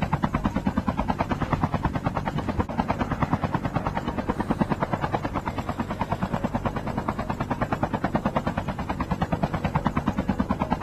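Helicopter rotor blades thump rapidly and steadily.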